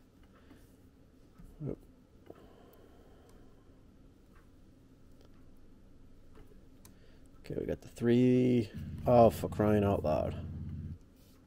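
A laptop trackpad clicks softly a few times.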